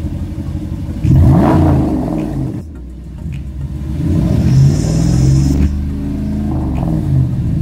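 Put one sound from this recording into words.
A truck engine revs loudly through the exhaust.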